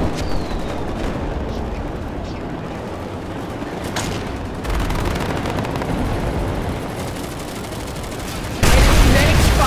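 An energy shield hums and crackles.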